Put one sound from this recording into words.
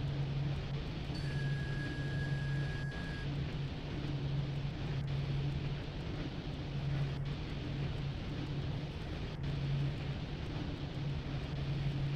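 A locomotive engine drones steadily with a low, pulsing hum.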